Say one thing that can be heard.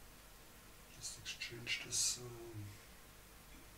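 A middle-aged man speaks briefly into a microphone.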